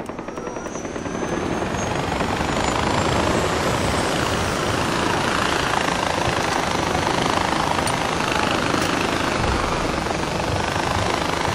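A pulley hisses and whirs along a cable, growing louder and then staying steady.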